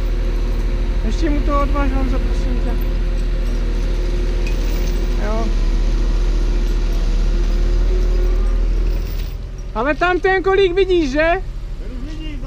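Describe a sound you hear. A man calls out loudly outdoors.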